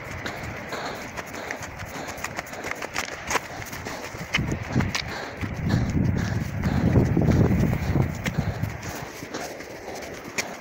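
Wind blows hard across open ground outdoors, gusting stronger for a while.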